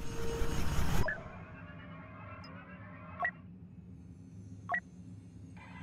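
Short electronic menu blips sound as options are selected.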